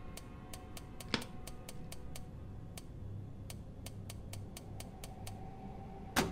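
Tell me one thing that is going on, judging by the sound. A safe's combination dial clicks steadily as it turns.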